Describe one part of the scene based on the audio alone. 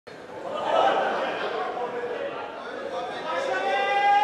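A man speaks loudly and theatrically on a stage microphone.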